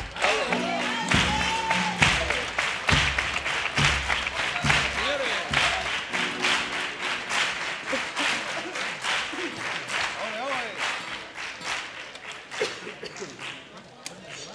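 A man claps his hands in a quick, steady rhythm.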